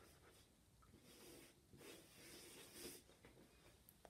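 A hand rubs chalk pastel softly across paper.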